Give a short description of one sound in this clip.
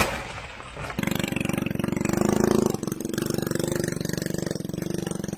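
A small motor runs with a steady, rapid chugging.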